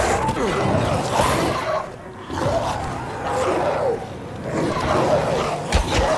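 Flames burst up and roar.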